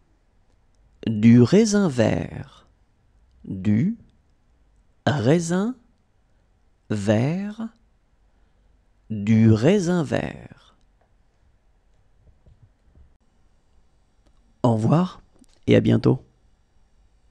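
A man speaks clearly and slowly, as if reading words out for learners.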